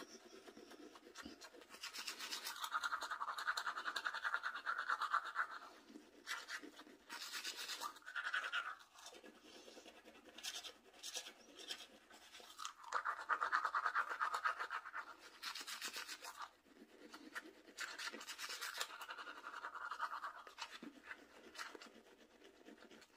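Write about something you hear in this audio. A toothbrush scrubs against teeth with a wet, foamy rasp, close by.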